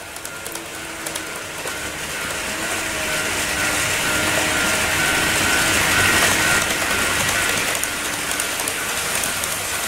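A second N-scale model train approaches on its track, its motor whining.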